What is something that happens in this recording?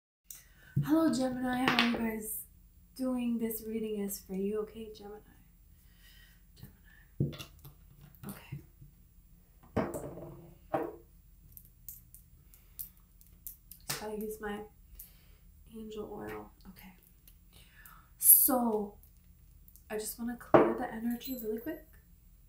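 A young woman speaks calmly and close by, in short bursts with pauses.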